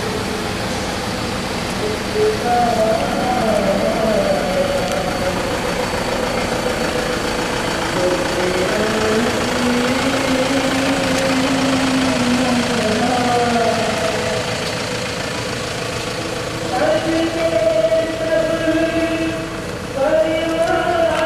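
Footsteps shuffle slowly on a paved road.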